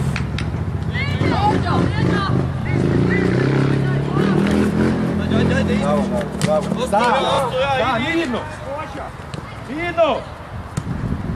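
Players shout to each other across an outdoor pitch.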